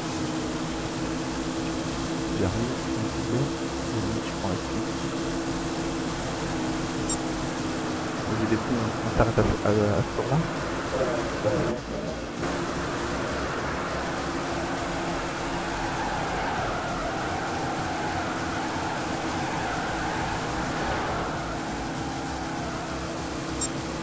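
A V8 stock car engine drones at full throttle.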